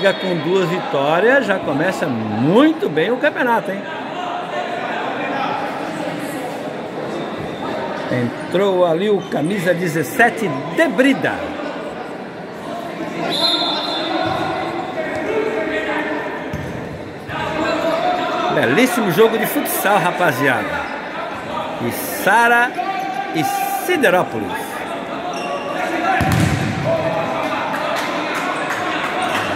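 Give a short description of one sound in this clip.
A ball is kicked hard on an echoing indoor court.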